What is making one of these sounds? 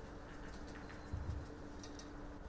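A billiard ball is set down on the table with a soft knock.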